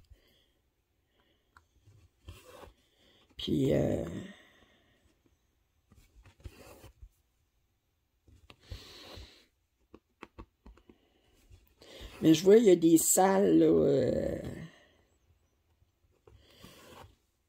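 Fingers brush softly over stitched fabric.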